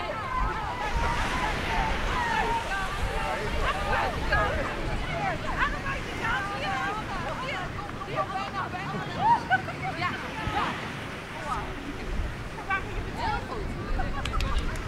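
A group of young people chatter and call out at a distance outdoors.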